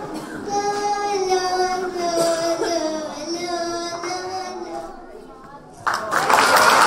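A young girl sings into a microphone through loudspeakers.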